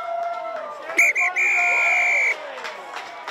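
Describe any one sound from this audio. A referee's whistle blows a long, shrill blast outdoors.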